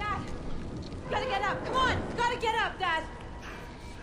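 A young woman calls out anxiously, close by.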